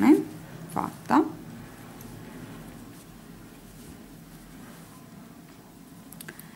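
Hands rustle softly against knitted fabric.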